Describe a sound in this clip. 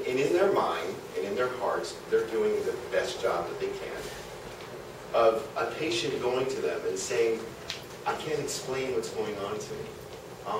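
A man speaks with animation in a room with slight echo.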